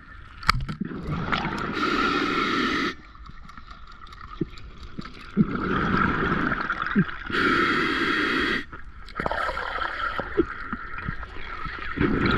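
A diver breathes through a regulator underwater, with bubbles rushing loudly on each breath out.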